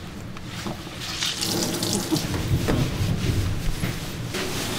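A towel rubs briskly over a wet cat's fur.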